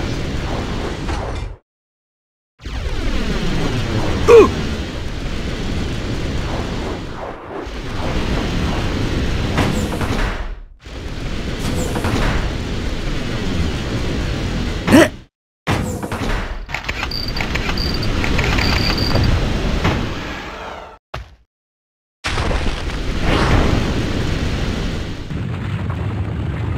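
Rocket engines roar steadily.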